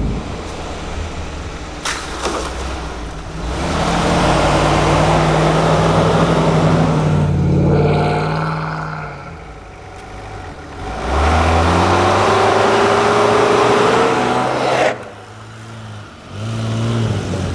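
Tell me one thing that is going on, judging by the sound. Off-road vehicle engines rev and roar as they climb through snow.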